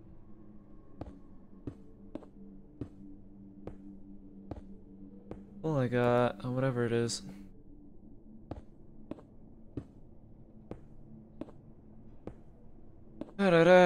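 Stone blocks are placed with soft, evenly spaced knocks.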